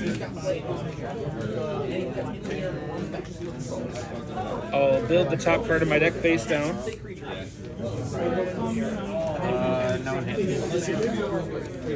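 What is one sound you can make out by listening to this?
Playing cards rustle as they are shuffled by hand.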